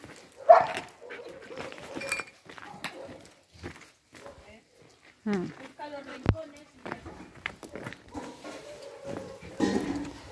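Dogs' paws patter on gravel.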